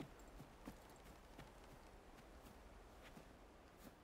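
Footsteps crunch softly on the ground.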